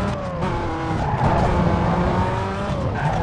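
Tyres screech in a skid.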